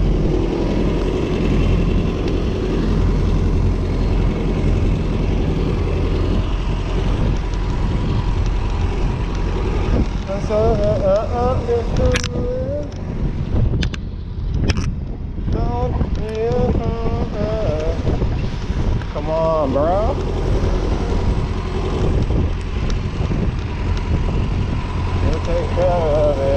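A bus engine hums just ahead.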